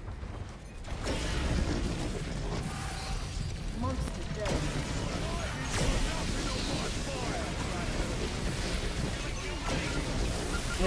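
Heavy gunfire blasts rapidly and steadily.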